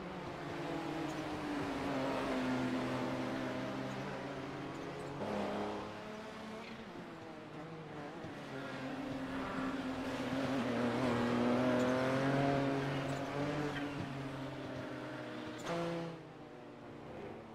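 Racing car engines whine past in the distance, rising and falling in pitch.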